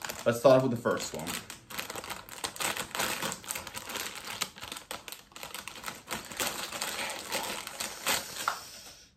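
A plastic wrapper crinkles and rustles as it is torn open.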